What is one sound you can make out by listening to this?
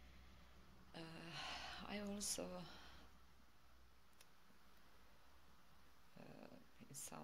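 A middle-aged woman speaks calmly close to a microphone.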